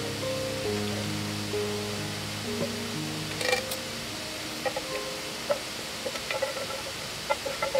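A spoon scrapes food from a pan onto a plate.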